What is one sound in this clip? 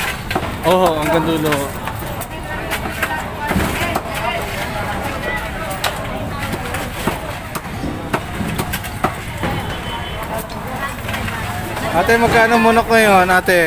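A shovel scrapes and clatters through wet debris.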